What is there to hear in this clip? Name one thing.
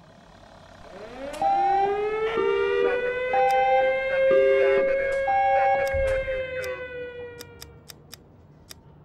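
A siren wails, rising and then slowly fading.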